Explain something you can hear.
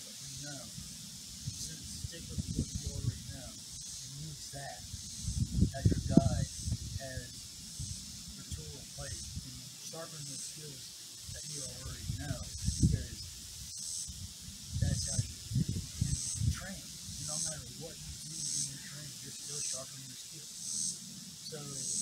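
A man talks with animation outdoors, a few metres off.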